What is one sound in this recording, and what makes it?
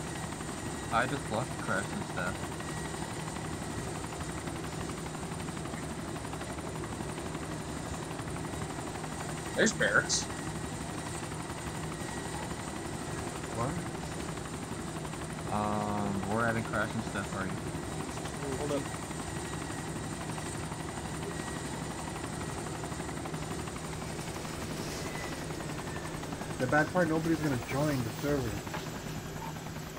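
A helicopter's rotor thumps and drones steadily.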